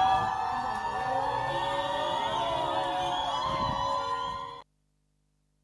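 A crowd of men and women chants and shouts outdoors.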